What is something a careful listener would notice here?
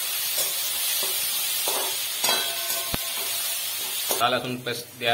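Food sizzles loudly in a hot pan.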